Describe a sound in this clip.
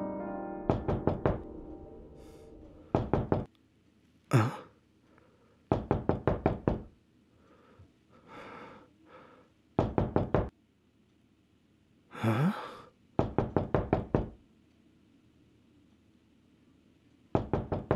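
A fist knocks repeatedly on a wooden door in quick bursts.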